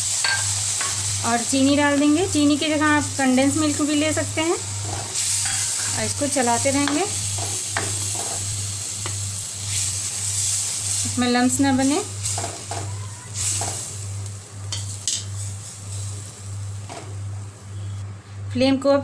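Liquid bubbles and hisses in a pan.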